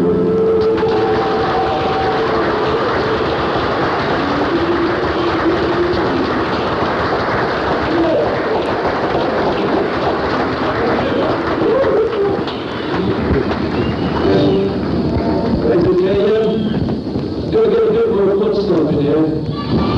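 A live rock band plays electric guitars loudly in a large hall.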